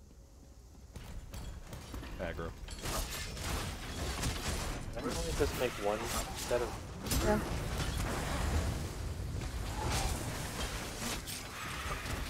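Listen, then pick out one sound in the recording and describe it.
Magic spells crackle and burst loudly.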